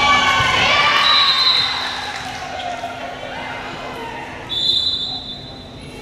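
A referee's whistle blows short, shrill blasts.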